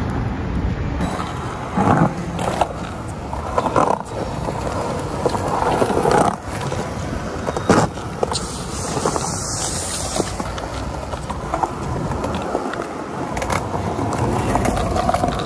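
Skateboard wheels roll and rumble over pavement.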